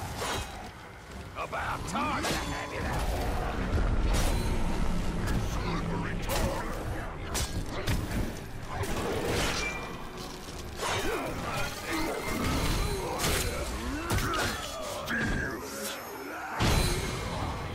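Blades slash and strike in quick, repeated hits.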